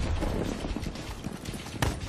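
A gun fires bursts of shots.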